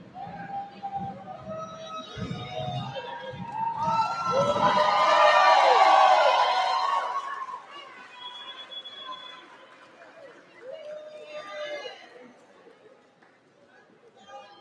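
People in an audience chatter nearby.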